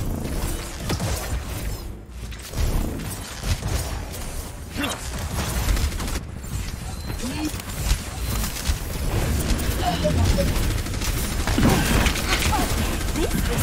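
Weapons fire in quick bursts with sharp electronic zaps.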